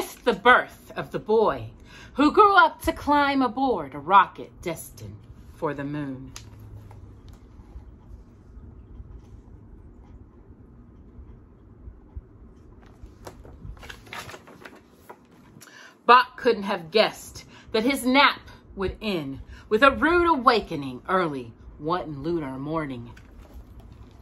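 A woman reads aloud calmly and expressively, close by.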